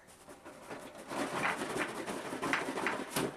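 A cardboard box scrapes and rustles as it is handled.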